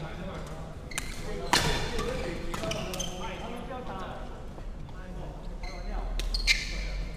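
Badminton rackets smack a shuttlecock in a large echoing hall.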